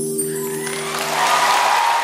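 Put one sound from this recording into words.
A live band plays a loud chord that rings out.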